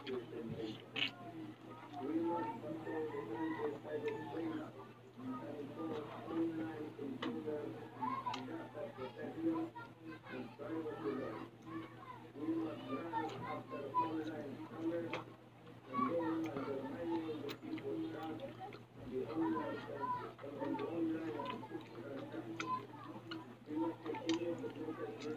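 A woman slurps and chews juicy mango close by.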